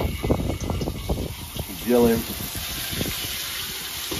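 Raw meat drops into hot oil with a sizzle.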